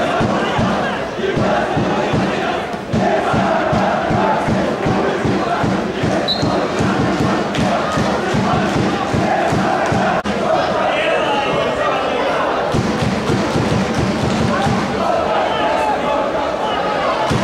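Football players call out to one another across an open field.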